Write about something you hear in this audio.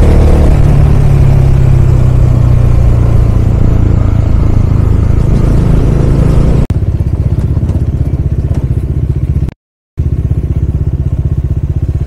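A motorcycle engine hums steadily up close.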